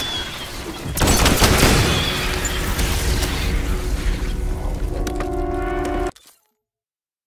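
Electric energy crackles and roars loudly.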